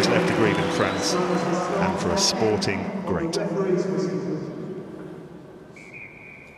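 A large stadium crowd chatters and calls out, then falls silent.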